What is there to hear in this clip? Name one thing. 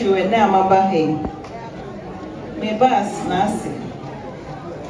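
A crowd of men sing together loudly nearby.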